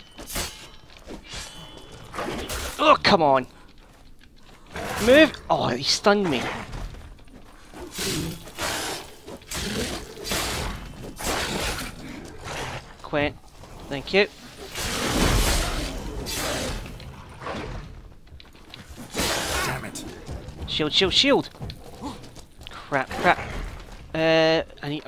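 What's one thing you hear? A sword swishes and clashes in a fight.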